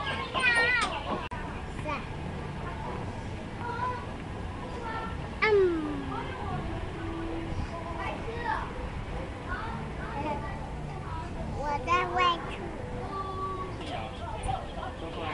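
Young children chatter and squeal excitedly close by.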